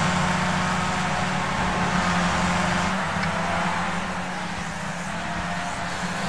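A racing car engine drones at high revs as the car speeds along a track.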